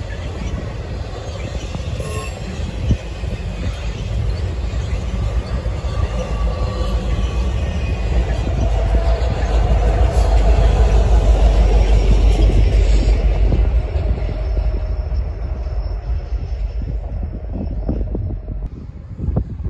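A freight train rumbles past on steel rails.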